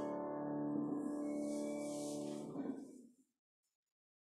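An organ holds a chord in an echoing hall, then stops.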